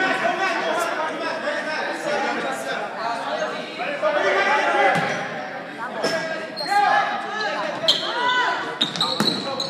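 Spectators chatter and cheer in the echoing gym.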